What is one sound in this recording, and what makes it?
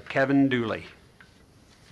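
A middle-aged man speaks briefly into a microphone.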